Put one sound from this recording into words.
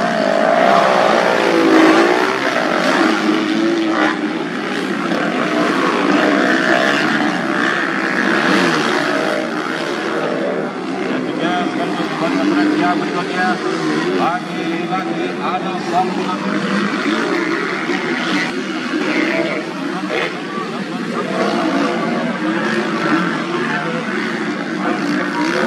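Dirt bike engines rev and whine loudly, rising and falling as they race past.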